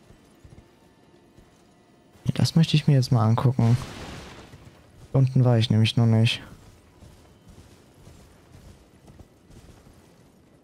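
Hooves thud on the ground as a horse gallops.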